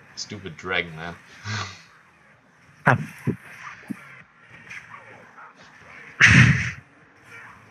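Weapons clash and magic blasts crackle in a fight.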